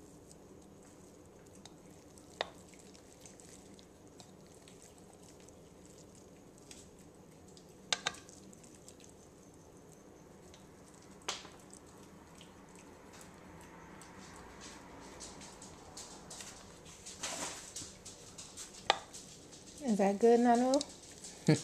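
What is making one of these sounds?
Hands pull apart cooked chicken with soft, wet tearing sounds.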